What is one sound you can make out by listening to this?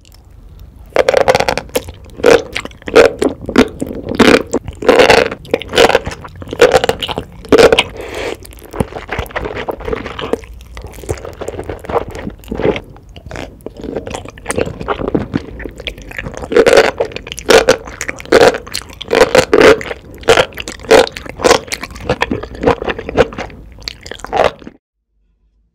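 A woman slurps noodles loudly and close up.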